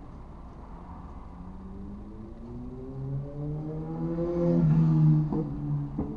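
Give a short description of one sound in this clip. A vehicle engine nearby rises steadily in pitch as it speeds up.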